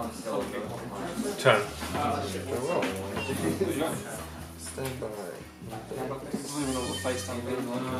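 Cards rustle as they are shuffled.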